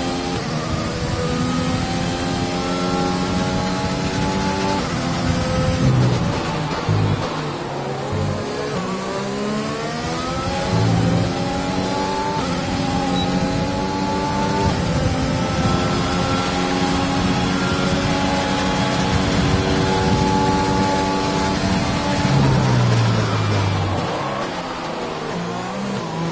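A racing car engine whines steadily at high speed, shifting pitch as it changes gear.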